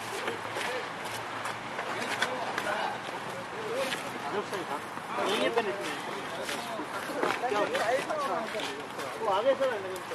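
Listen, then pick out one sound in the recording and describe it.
Adult men talk and call out casually outdoors.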